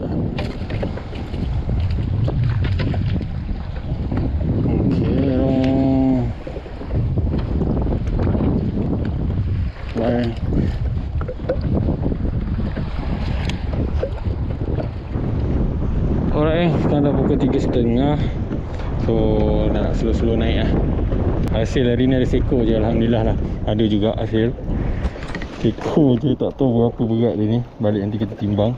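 Water splashes against a small boat's hull.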